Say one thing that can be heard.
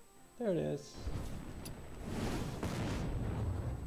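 A fiery blast roars and crackles.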